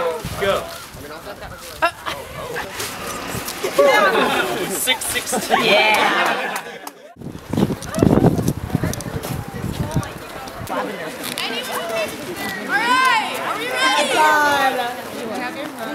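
A crowd of young adults chatters and calls out outdoors.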